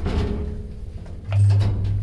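A button clicks when pressed.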